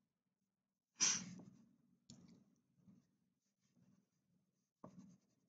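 A crayon scratches on paper.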